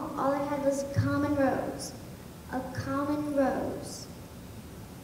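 A young girl speaks clearly on a stage, heard through a microphone.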